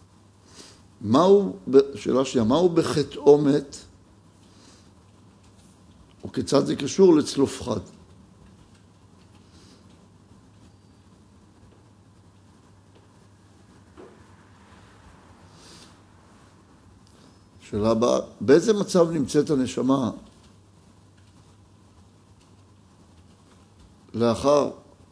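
An elderly man reads aloud calmly into a microphone, in short bursts with pauses.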